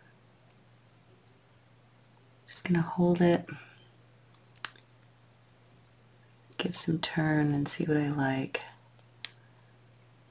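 Small pliers click softly against metal wire.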